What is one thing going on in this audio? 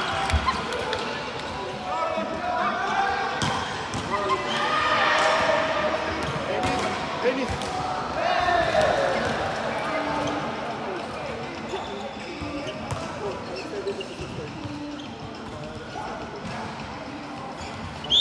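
Young men and women talk and call out in a large echoing hall.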